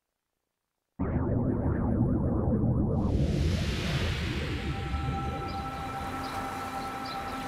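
A swirling whirlwind roars with a deep rumble.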